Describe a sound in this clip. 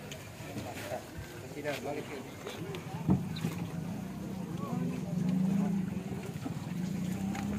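Several men talk nearby outdoors with animation.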